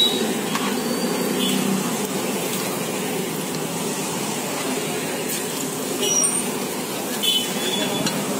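A metal ladle scrapes and clinks against a pan.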